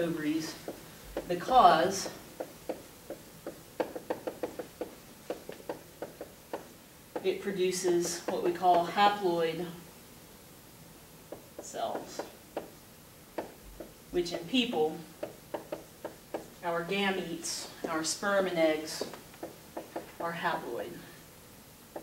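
A woman speaks calmly, explaining, close by.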